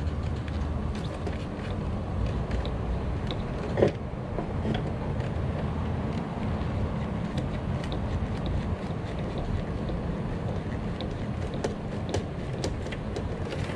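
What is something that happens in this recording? Small plastic clicks sound as parts are handled.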